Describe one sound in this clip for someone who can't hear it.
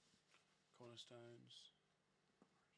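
A man speaks briefly and casually, close to a microphone.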